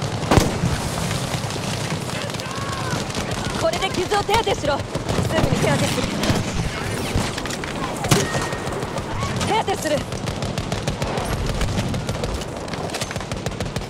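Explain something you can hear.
Gunshots and explosions crack and boom nearby in a battle.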